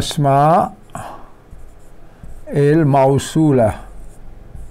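A man speaks loudly in drawn-out, chanting tones, close by.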